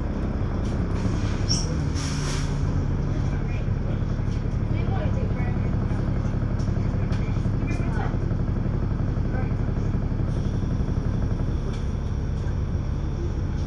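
A bus engine hums steadily, heard from inside.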